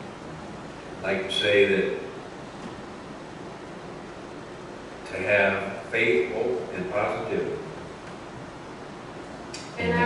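An elderly man speaks calmly into a microphone, heard through a loudspeaker in a reverberant hall, with pauses.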